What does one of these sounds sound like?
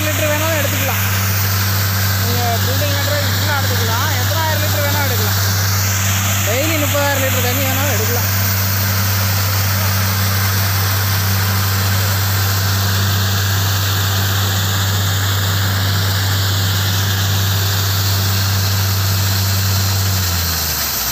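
Muddy water gushes and splashes from a borehole.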